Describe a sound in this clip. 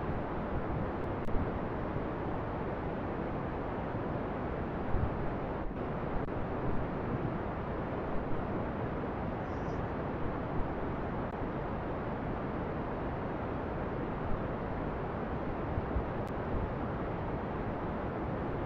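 A rocket engine roars steadily.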